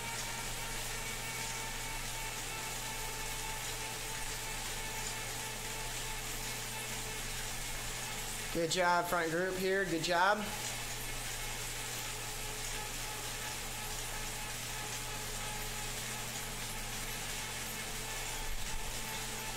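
A stationary bike trainer hums steadily.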